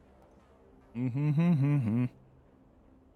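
A young man speaks briefly into a close microphone, in a drawn-out, sing-song voice.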